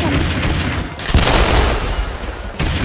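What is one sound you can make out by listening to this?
An explosion booms with a loud roar.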